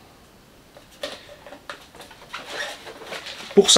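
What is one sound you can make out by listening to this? Plastic parts of a toy car rattle and click as a man handles it.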